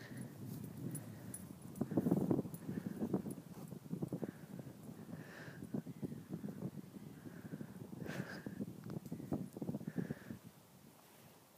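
Wind rumbles against the microphone in gusts outdoors.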